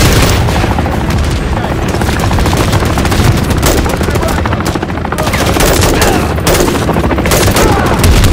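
A rifle fires in quick bursts at close range.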